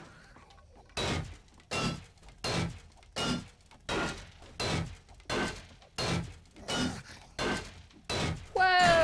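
A hammer strikes metal repeatedly with sharp clanks.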